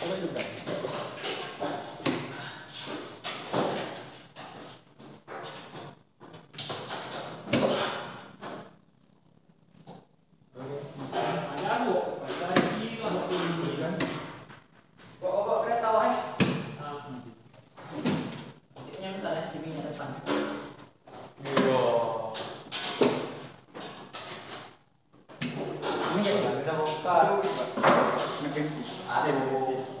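Metal parts click and clack inside a cabinet.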